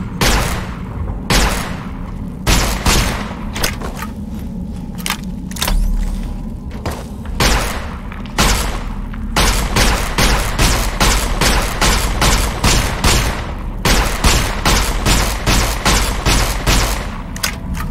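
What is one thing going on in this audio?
A heavy gun fires in bursts of sharp shots.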